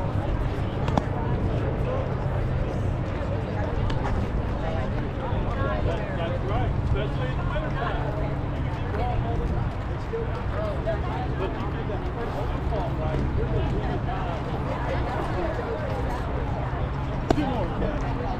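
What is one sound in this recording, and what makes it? A softball smacks sharply into a catcher's mitt.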